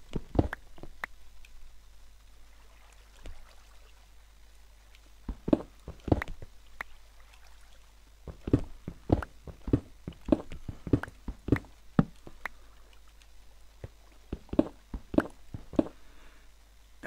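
A pickaxe taps and breaks stone blocks in quick knocks.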